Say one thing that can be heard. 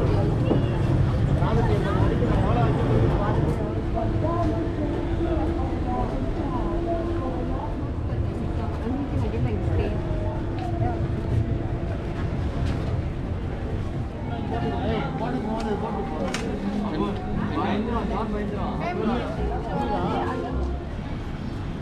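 Several men and women talk in lively voices nearby.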